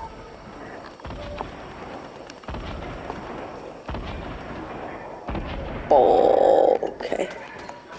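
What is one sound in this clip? Footsteps thud quickly up wooden stairs.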